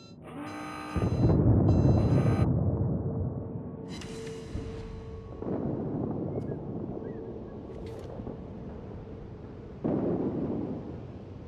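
Heavy naval guns fire with loud, deep booms.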